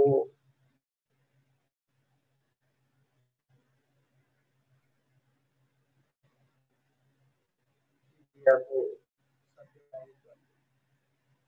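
An elderly man speaks a few short words over an online call.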